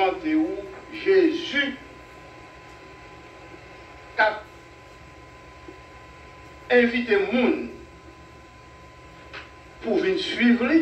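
An elderly man preaches into a microphone with long pauses, heard through a loudspeaker.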